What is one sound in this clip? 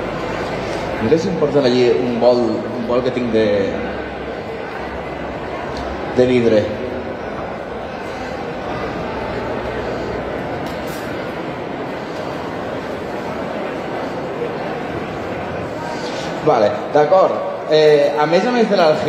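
A man speaks over a loudspeaker with animation in a large echoing hall.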